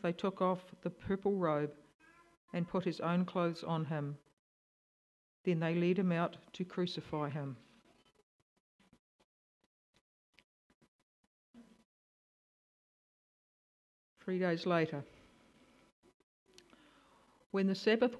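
An elderly woman reads aloud calmly into a microphone, pausing between phrases.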